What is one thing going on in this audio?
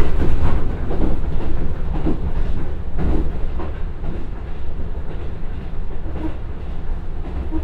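A diesel train engine rumbles steadily as the train rolls along.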